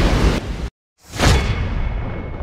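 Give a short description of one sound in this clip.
Flames whoosh up in a sudden burst.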